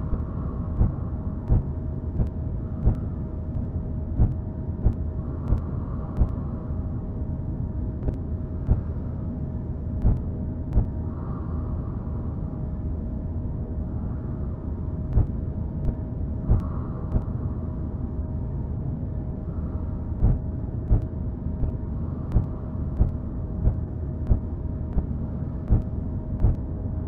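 A mining drill grinds steadily through rock with a low rumble.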